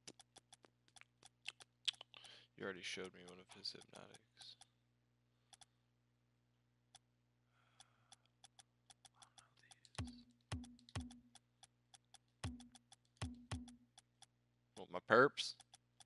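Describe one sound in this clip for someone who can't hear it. Soft interface clicks tick rapidly as menu items are selected.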